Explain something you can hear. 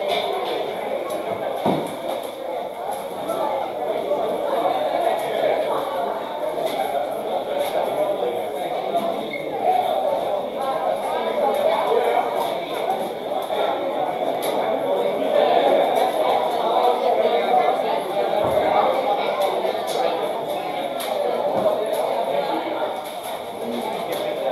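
A crowd of people chatters and murmurs throughout.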